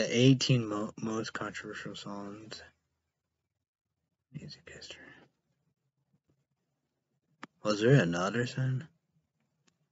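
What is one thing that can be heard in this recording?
A young man talks calmly and close to a microphone, with pauses.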